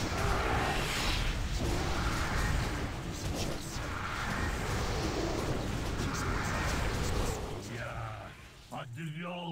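Spell blasts roar and crackle in a loud fight.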